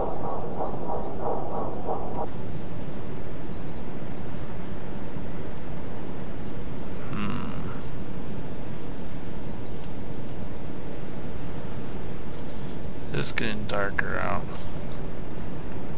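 Rough sea waves wash and roll steadily.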